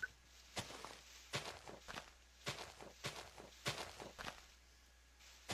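Footsteps crunch softly on grass and leaves.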